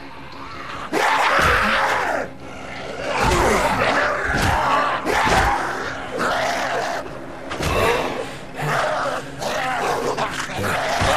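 A monster growls and snarls close by.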